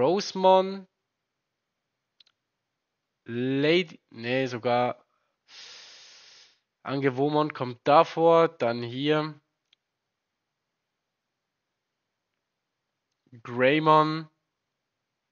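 A young man speaks calmly into a close microphone, in short bursts with pauses.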